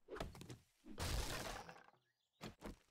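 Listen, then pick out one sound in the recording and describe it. A stone axe chops into wood with a crunch.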